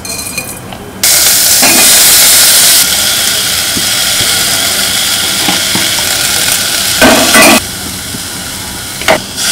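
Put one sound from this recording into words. Oil sizzles loudly in a pan.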